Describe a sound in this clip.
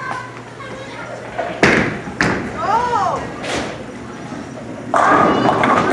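A bowling ball rumbles down a lane.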